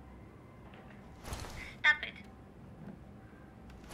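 A toy bear squeaks as it is poked.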